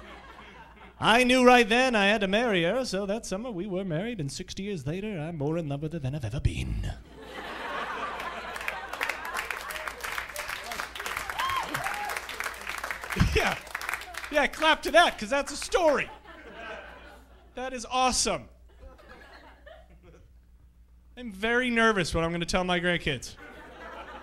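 A man speaks with animation into a microphone to an audience, in a large room.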